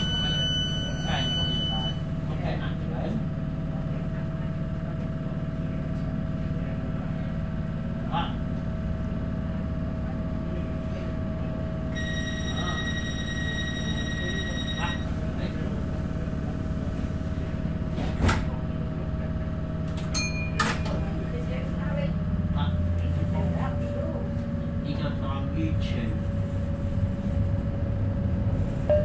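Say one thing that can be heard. The electric motors of a light rail train whine steadily.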